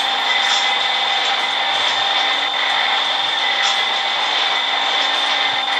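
A subway train rumbles and hums steadily along the tracks.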